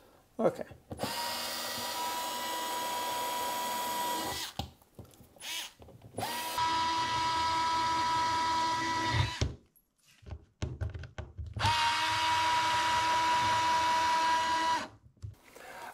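A power tool whirs steadily in short bursts.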